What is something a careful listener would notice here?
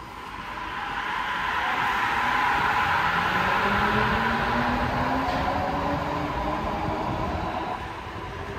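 A train's electric motor whines, rising steadily in pitch.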